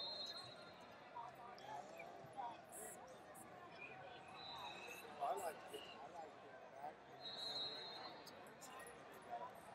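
Wrestling shoes squeak on the mat.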